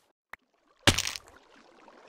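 Water flows and splashes.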